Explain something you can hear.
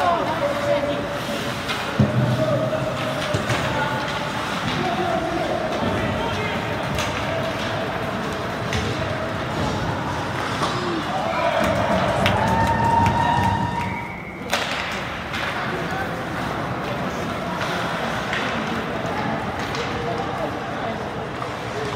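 Voices of spectators echo through a large arena.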